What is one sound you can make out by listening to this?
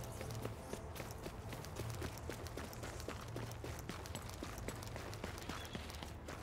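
Footsteps crunch quickly over snow and pavement.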